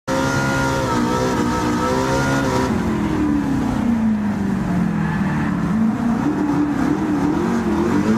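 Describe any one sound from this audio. A car engine roars at high revs, then drops in pitch as the driver shifts and brakes into a corner.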